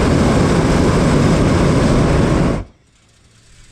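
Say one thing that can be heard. A hot air balloon's propane burner roars overhead.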